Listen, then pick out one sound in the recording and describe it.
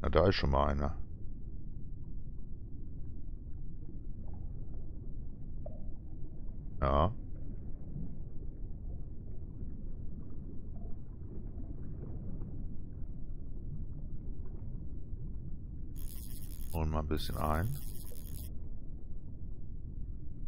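Water rumbles low and muffled underwater.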